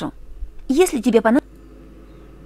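A young woman speaks calmly in a quiet voice.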